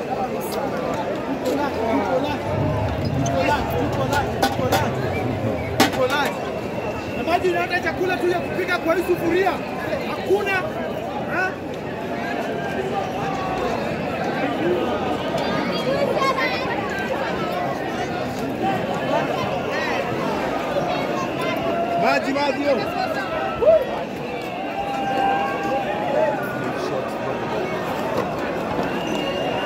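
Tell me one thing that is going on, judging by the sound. A large crowd of men and women talks and shouts outdoors.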